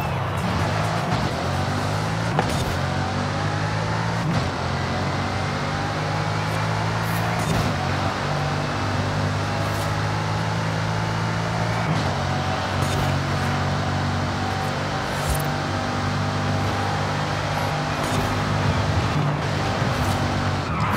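Tyres rush over the road.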